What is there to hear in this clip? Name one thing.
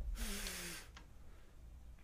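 A lever is pulled with a short clunk.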